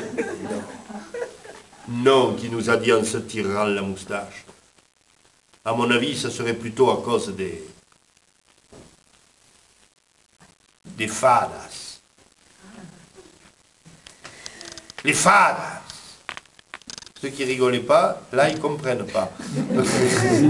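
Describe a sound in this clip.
A man speaks with animation, in pauses, close by.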